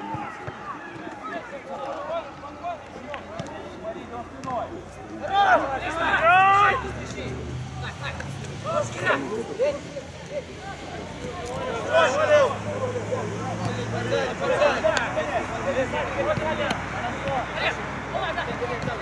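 Young men shout and call to one another across an open outdoor field.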